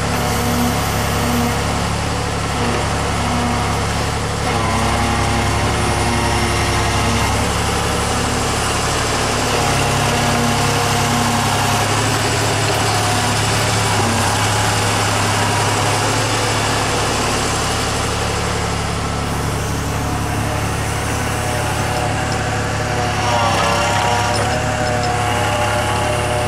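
Hydraulics whine as an excavator arm swings and lifts.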